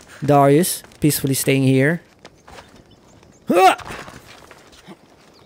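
Footsteps scuff over rocky ground.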